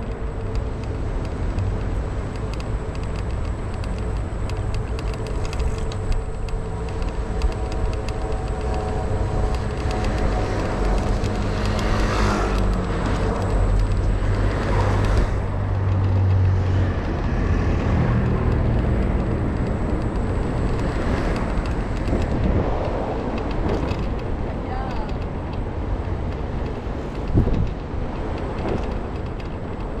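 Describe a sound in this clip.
Wind rushes steadily past outdoors.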